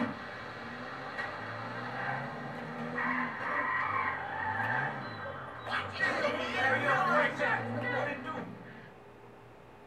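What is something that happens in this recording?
A car engine revs and roars as a car pulls away.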